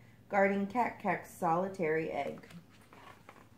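A young woman reads aloud close by in a lively, sing-song voice.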